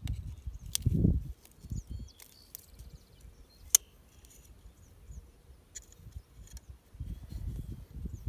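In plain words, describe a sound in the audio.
Metal pliers click and scrape against a metal ring.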